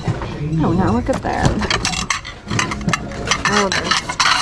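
Hard plastic bowls knock and clatter together in hands.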